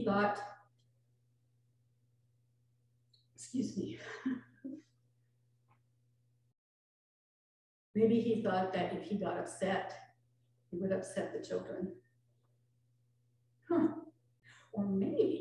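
An elderly woman speaks calmly through a microphone, with pauses.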